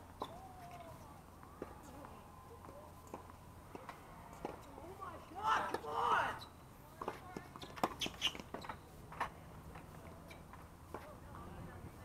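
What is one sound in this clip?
Tennis balls are struck with sharp pops of rackets.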